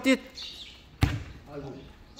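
A football thuds as a player kicks it.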